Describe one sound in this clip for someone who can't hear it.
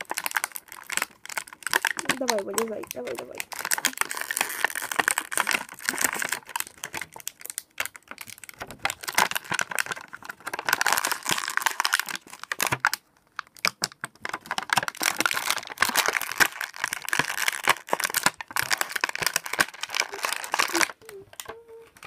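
Plastic packaging crinkles and rustles close by as hands open it.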